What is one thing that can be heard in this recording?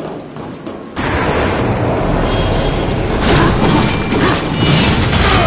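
A magic blast crackles and booms.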